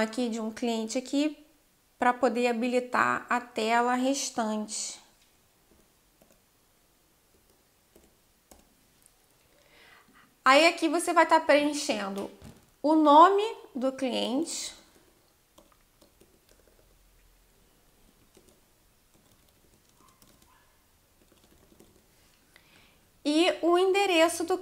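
A young woman talks calmly into a nearby microphone, in short bursts with pauses.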